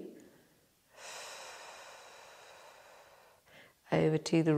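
A woman exhales slowly and audibly.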